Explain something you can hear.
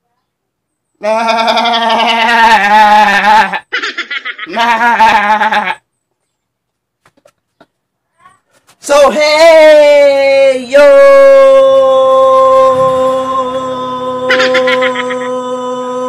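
A young man sings loudly and with animation close by, holding long wavering notes.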